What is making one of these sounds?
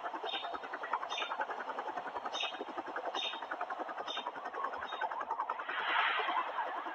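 A helicopter's rotor beats in a fast, steady chop.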